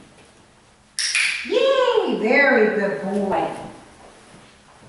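A woman speaks to a dog in a high, cheerful voice close by.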